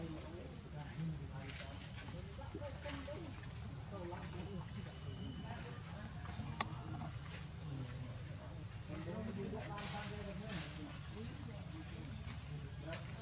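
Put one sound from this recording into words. A baby monkey whimpers and squeaks close by.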